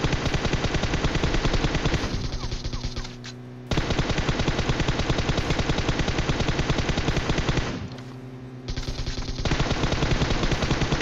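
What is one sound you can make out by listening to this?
Rapid automatic gunfire rattles in quick bursts.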